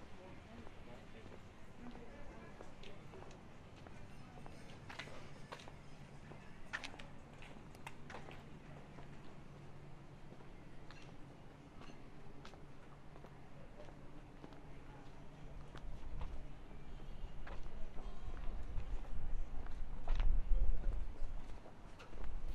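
Quiet street noise hums outdoors.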